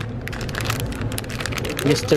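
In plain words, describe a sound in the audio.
Plastic toy packages rustle and crinkle close by.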